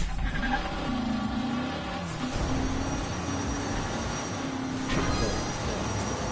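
A racing car's engine hums steadily as it speeds along.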